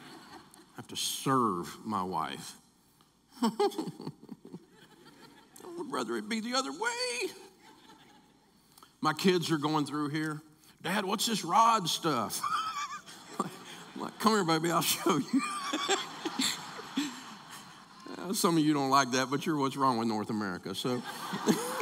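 A middle-aged man reads aloud and speaks through a microphone.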